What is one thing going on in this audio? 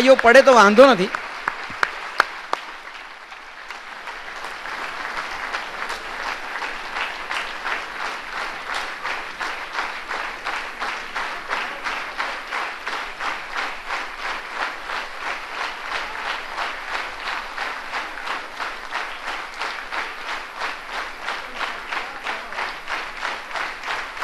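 A large audience claps in a steady rhythm in an echoing hall.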